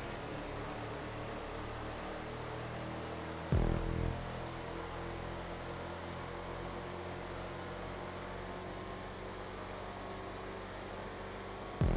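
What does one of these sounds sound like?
An SUV engine drones at full throttle at high speed.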